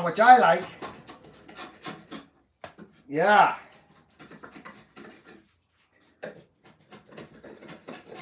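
A drawknife scrapes and shaves wood in short strokes.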